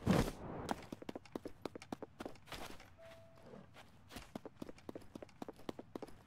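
Footsteps patter quickly on sand.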